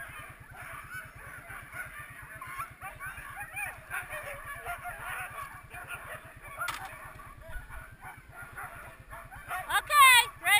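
Excited sled dogs yelp and whine loudly nearby.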